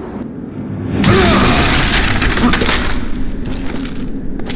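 A heavy crash of stone and rubble booms and rumbles.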